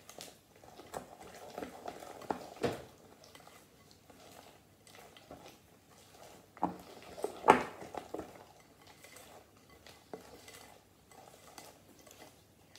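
A spoon scrapes and clinks against a glass bowl while stirring thick batter.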